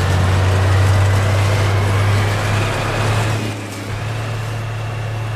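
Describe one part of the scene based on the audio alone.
A vehicle engine hums with a low, steady drone.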